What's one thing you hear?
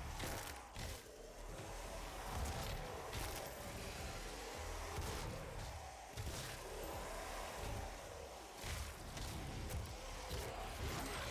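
Gunshots and heavy blasts ring out in quick bursts.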